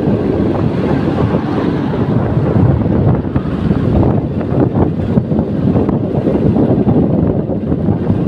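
Wind roars and buffets loudly against the microphone.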